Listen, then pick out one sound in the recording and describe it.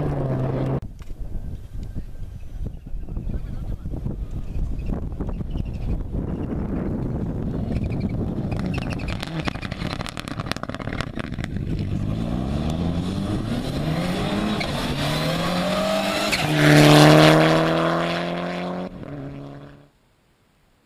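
A rally car engine roars at high revs, rising and falling as it shifts gears.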